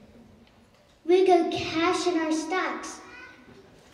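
Another young child speaks with animation into a microphone, heard over loudspeakers in a large hall.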